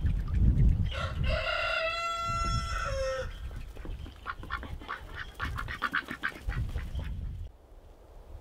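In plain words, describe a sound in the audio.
Ducks quack loudly nearby.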